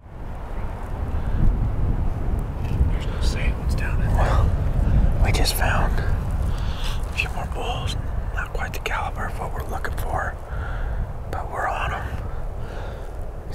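A man speaks quietly, close to the microphone.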